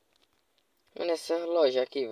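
A young man speaks loudly into a microphone.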